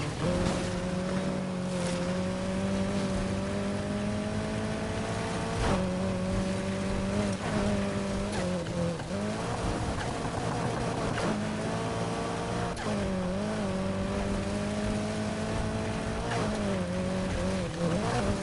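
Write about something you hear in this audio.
A car engine roars loudly, its pitch rising and dropping with gear shifts.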